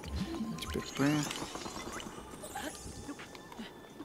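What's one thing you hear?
A bright magical chime rings out as a block of ice forms.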